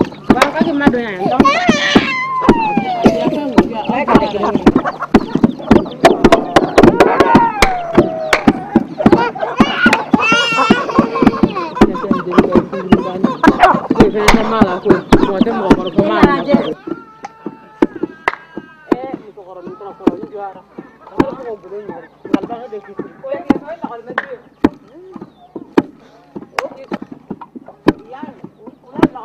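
Wooden pestles pound rhythmically in mortars.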